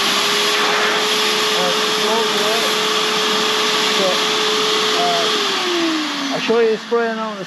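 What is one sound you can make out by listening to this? A small air compressor hums steadily, then winds down.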